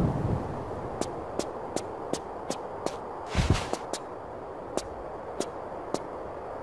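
Footsteps tap quickly on stone paving.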